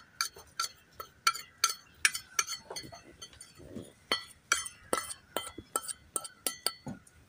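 A spoon taps rapidly against a metal pot with bright, ringing clinks.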